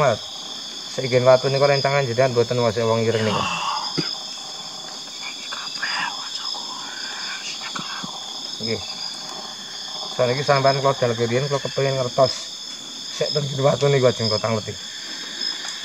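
A young man lets out long, wailing moans close by.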